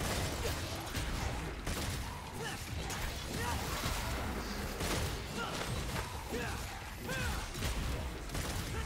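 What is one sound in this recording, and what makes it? Gunshots fire rapidly.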